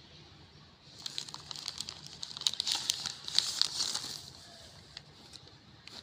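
A plastic bag crinkles and rustles as hands open it.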